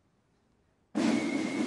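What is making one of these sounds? A snare drum is struck loudly.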